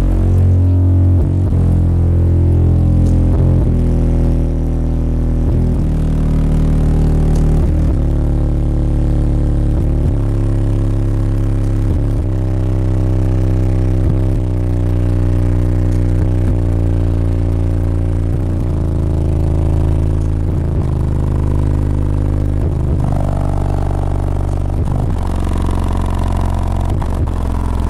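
Subwoofers boom with loud, deep bass music that changes pitch every couple of seconds.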